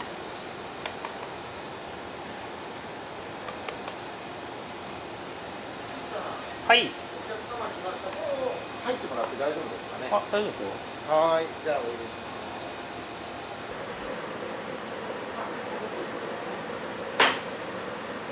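A spoon clinks lightly against a ceramic bowl.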